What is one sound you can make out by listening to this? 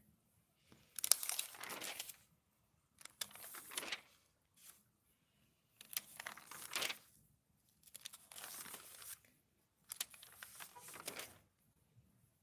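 Glossy magazine pages rustle and flap as they are turned.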